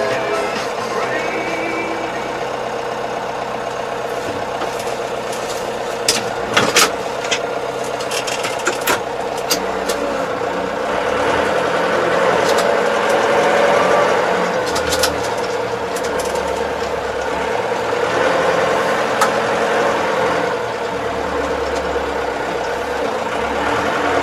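A tractor engine hums steadily from inside the cab.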